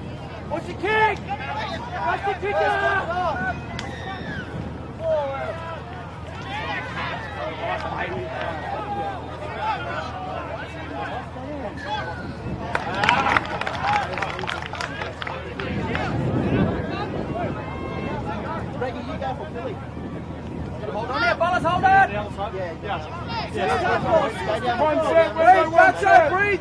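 A crowd murmurs and calls out outdoors.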